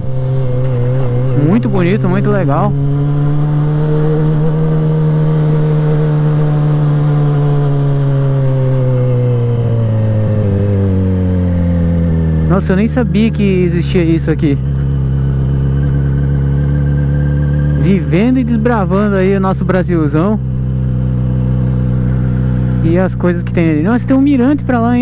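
A motorcycle engine hums steadily, its pitch dropping as it slows.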